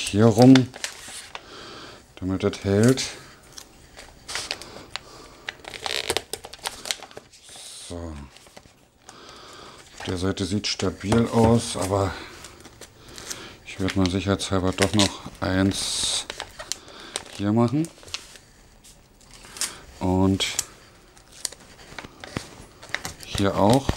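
A man talks calmly and close by, in bursts.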